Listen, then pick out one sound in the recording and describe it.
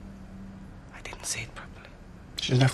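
A woman speaks softly in distress.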